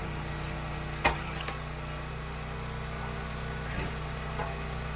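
A log splits with a sharp crack.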